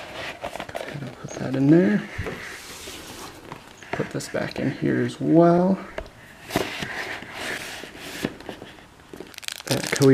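Stiff cardboard taps softly.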